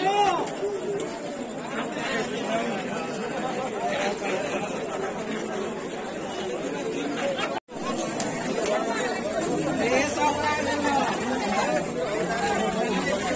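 A crowd of young men and women chatter loudly nearby.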